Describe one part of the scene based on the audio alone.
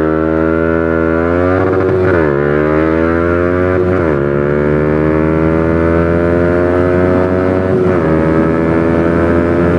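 Wind rushes past at speed.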